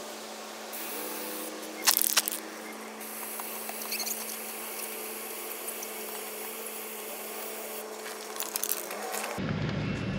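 A bike chain ticks softly over a sprocket.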